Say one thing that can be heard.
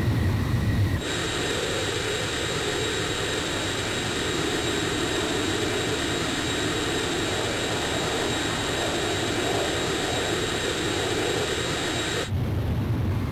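Wind rushes loudly past a jet's cockpit.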